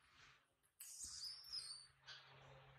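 A baby monkey squeals briefly.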